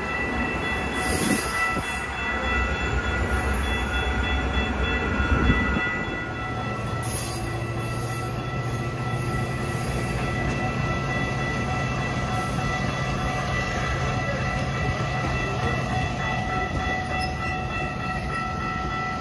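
A passenger train rumbles slowly past close by.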